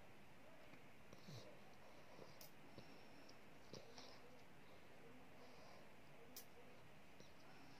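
A toddler sucks and gulps softly from a bottle, close by.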